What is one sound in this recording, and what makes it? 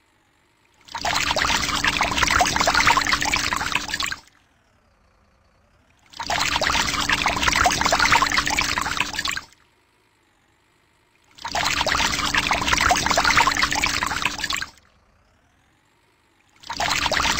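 Water sprays out in loud rushing bursts.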